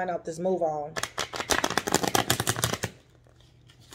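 Playing cards riffle quickly with a fast flutter.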